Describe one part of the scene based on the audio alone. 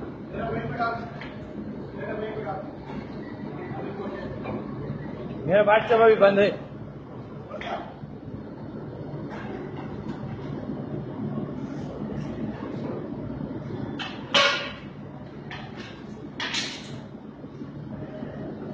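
A machine hums and whirs steadily.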